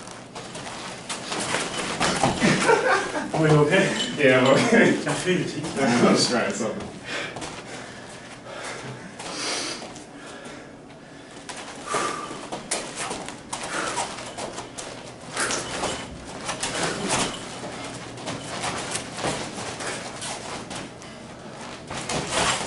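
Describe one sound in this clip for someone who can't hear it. Sneakers squeak and shuffle on a padded floor.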